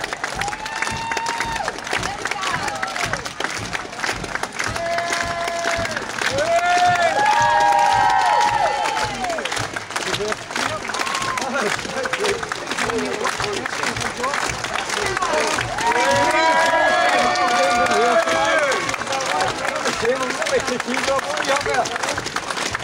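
A column of soldiers marches in step on a paved street.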